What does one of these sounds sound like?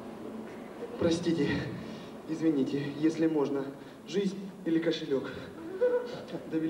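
A man speaks loudly and with animation into a microphone, heard through loudspeakers in a large hall.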